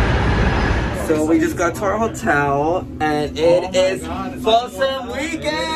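A young man talks and shouts excitedly close by.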